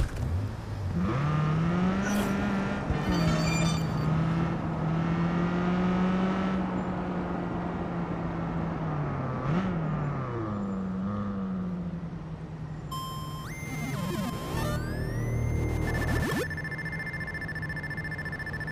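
A car engine starts and hums steadily as the car drives, rising and falling in pitch.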